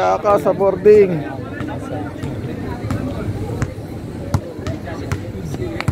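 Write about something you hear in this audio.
A basketball bounces repeatedly on a hard court.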